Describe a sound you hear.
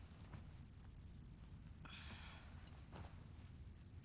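A person shifts on a creaking leather sofa.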